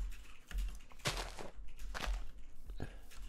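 Leaves rustle as something pushes through them.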